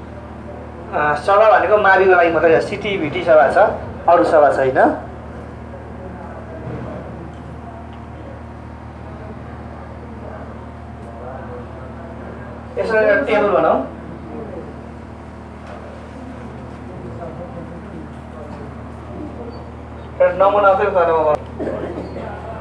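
A man speaks loudly into a small microphone in short bursts.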